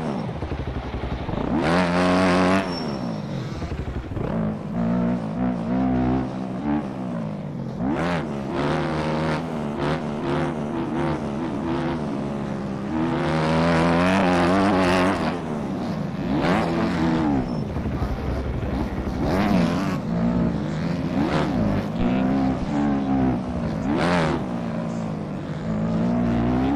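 A motorbike engine revs up and down as it races along.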